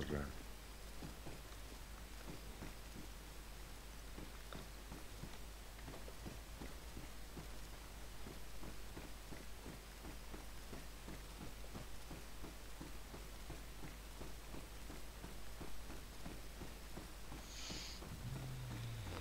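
Footsteps tap quickly on a hard floor indoors.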